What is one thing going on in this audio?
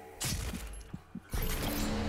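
A heavy gun fires loud blasts.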